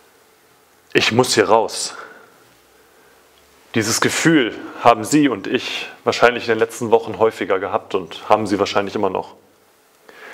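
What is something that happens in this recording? A young man speaks calmly and clearly, close by, in a slightly echoing room.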